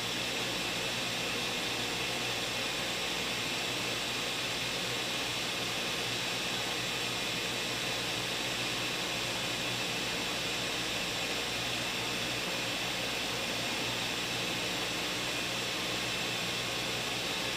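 A blender motor whirs loudly and steadily.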